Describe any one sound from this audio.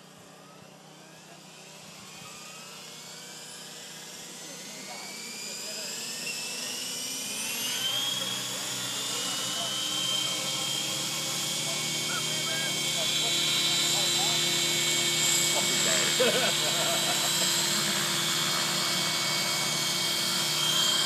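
Small drone rotors whine, rising in pitch and growing steadily louder.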